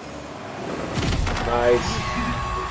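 A loud boom of a goal explosion erupts.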